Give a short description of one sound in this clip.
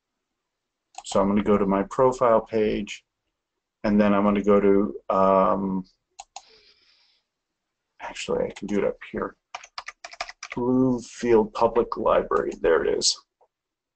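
A man talks calmly and clearly into a microphone, in short bursts with pauses.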